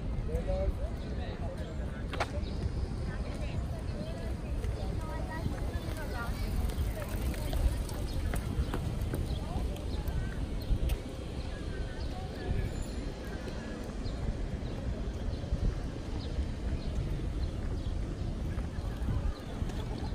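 Bicycles roll past on the road.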